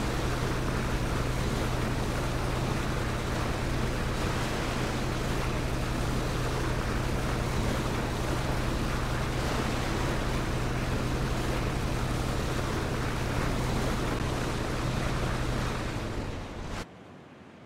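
Water rushes and splashes against a speeding boat's hull.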